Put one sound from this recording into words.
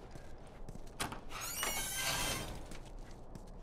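A door creaks as it is pushed open.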